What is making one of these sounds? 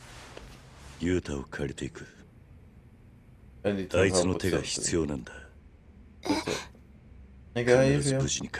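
A man speaks calmly in a low, firm voice.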